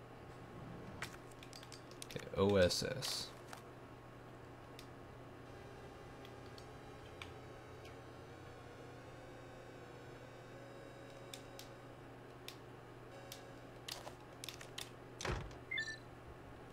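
Short electronic clicks sound as menu items are chosen.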